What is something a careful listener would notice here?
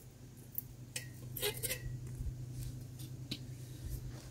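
Metal pots clink and clatter.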